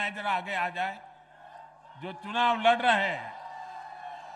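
A man shouts a slogan through a loudspeaker in a large open space.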